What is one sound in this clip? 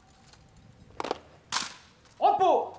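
Rifles clack sharply as soldiers handle them in unison.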